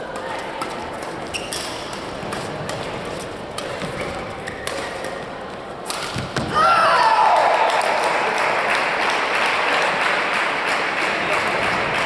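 Shoes squeak sharply on the court.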